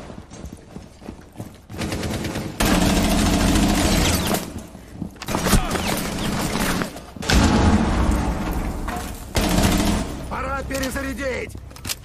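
Rapid gunfire bursts out in loud volleys.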